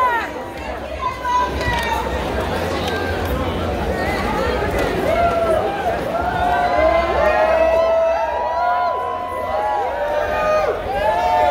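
Live music with a deep bass thumps through loudspeakers.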